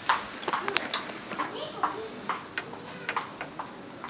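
A glass door rattles and swings open.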